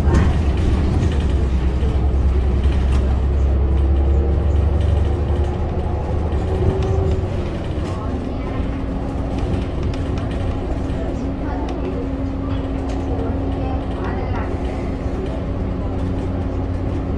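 Tyres roll on a paved road with a steady rumble.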